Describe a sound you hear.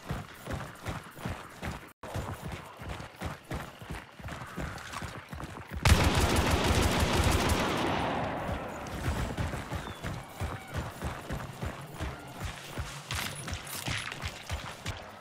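Footsteps crunch steadily over dirt and grass.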